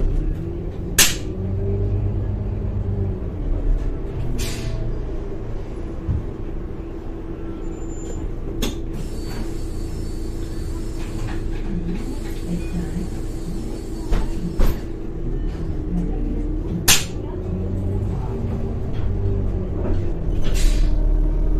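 Loose fittings inside a bus rattle and knock now and then.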